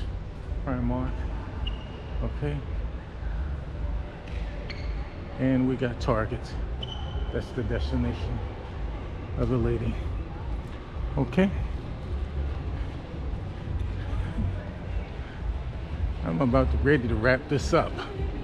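A low murmur fills a large echoing indoor hall.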